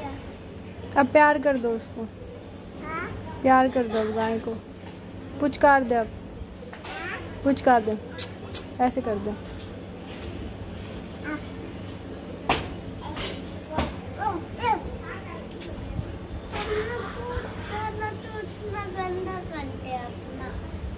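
A small child babbles and squeals close by.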